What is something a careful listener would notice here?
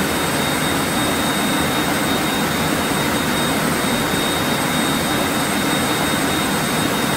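Jet engines drone steadily with a high whine.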